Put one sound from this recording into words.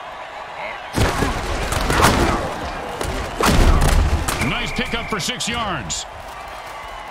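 Heavy thuds and crashes ring out as players collide.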